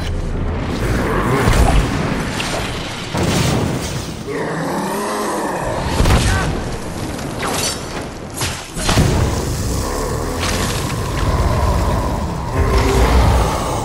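Rocks and debris crash and crumble.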